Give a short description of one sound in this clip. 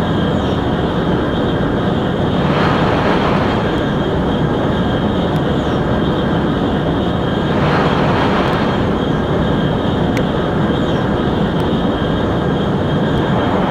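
Wind rushes steadily past a fast-moving train.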